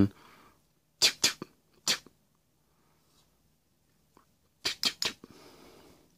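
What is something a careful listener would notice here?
A toy pistol clicks sharply several times.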